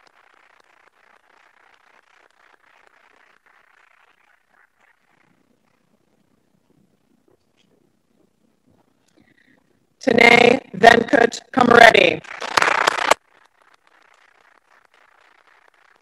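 People clap their hands softly.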